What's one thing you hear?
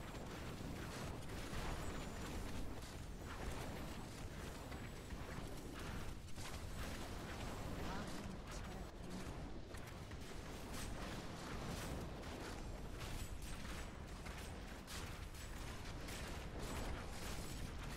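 Spells burst with sharp blasts.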